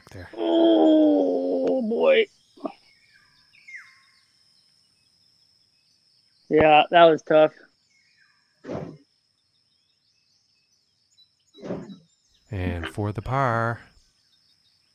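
A man talks casually and close into a microphone.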